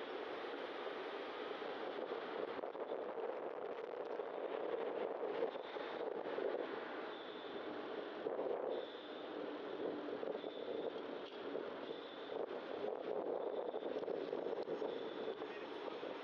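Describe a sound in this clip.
Other cars pass by on the street.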